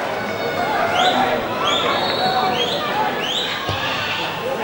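A referee's whistle blows in short sharp bursts.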